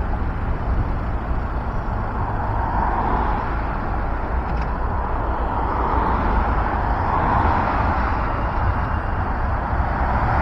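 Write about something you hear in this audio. Traffic hums steadily on a nearby city street, with cars swelling past now and then.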